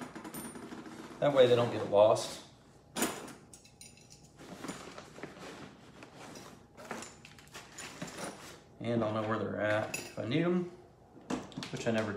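Fabric of a bag rustles as it is handled.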